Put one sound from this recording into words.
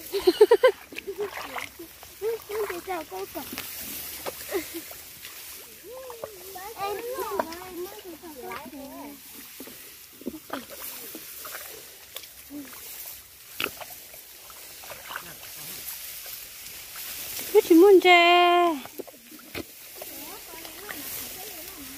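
Tall grass rustles as people push through it.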